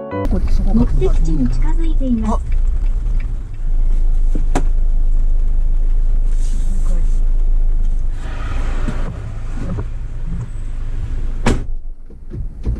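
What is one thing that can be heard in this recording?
A car engine rumbles low and steadily while driving.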